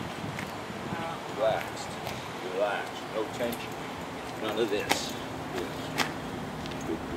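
A man speaks calmly outdoors, giving short commands.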